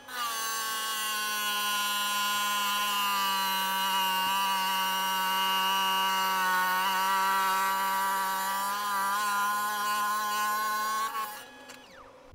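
A wet saw blade whines steadily as it cuts through a stone.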